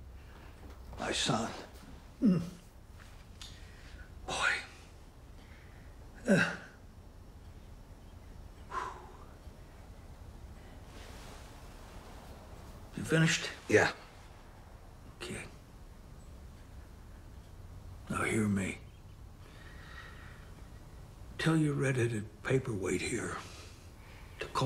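An elderly man speaks quietly and hesitantly, close by.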